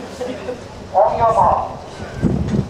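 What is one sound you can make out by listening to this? A starting signal sounds loudly for a race.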